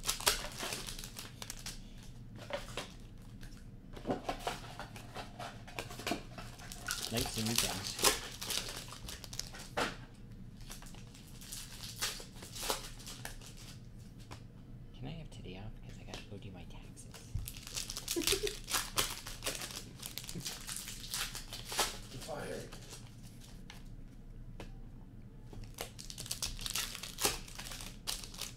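Plastic card wrappers crinkle and rustle as they are torn open.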